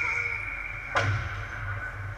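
A hockey stick strikes a puck with a sharp crack.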